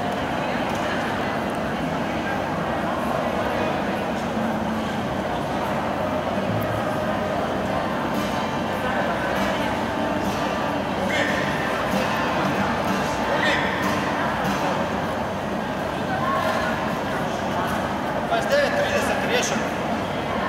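Children and women chatter and call out in a large echoing hall.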